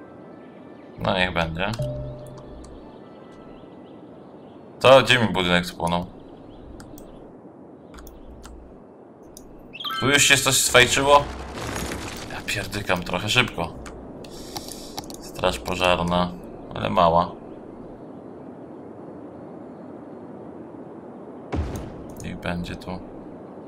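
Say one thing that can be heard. A man talks into a microphone with animation, in bursts with pauses.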